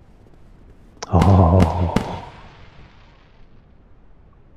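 Fireworks bang and crackle overhead.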